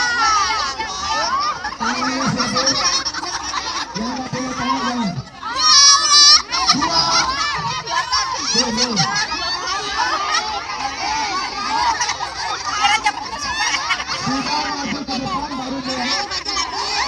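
A large crowd of women chatter and laugh nearby, outdoors.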